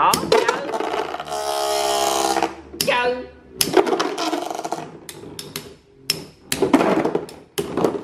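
Spinning tops whir and clack against each other in a plastic arena.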